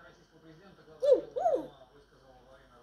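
A parrot hoots twice in a rising and falling voice.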